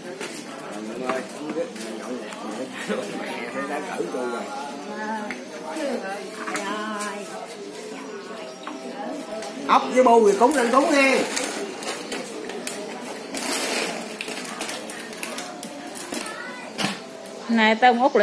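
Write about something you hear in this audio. Men talk nearby in casual voices.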